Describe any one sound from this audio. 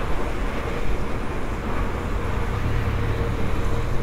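A truck drives past close by.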